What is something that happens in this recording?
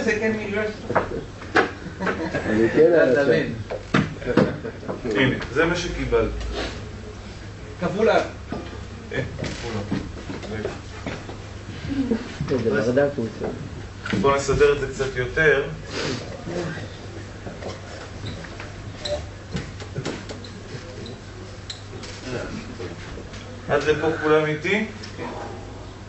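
A man lectures calmly.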